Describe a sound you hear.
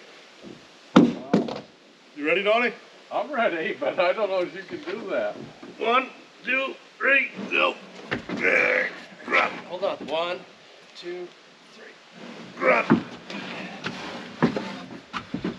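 Wooden boards knock against each other.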